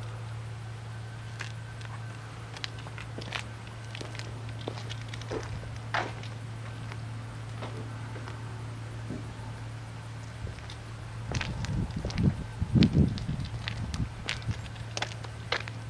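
A harvesting machine's engine hums steadily in the distance.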